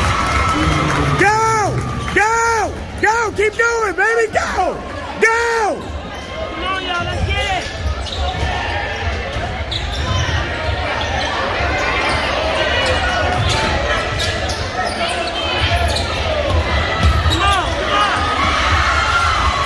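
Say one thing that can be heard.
A large crowd cheers and chatters in an echoing gym.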